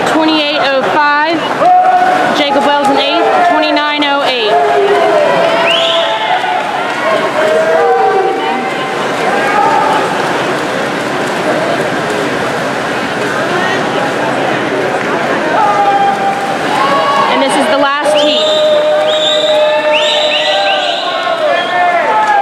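A crowd of spectators cheers and shouts in a large echoing indoor pool hall.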